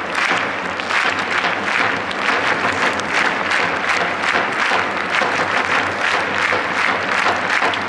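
A large stadium crowd chants and sings loudly in rhythm.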